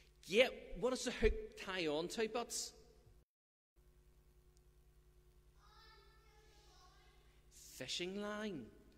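A middle-aged man speaks calmly through a microphone in a large echoing room.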